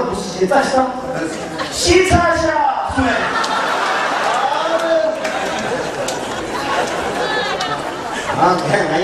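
A large crowd cheers and murmurs.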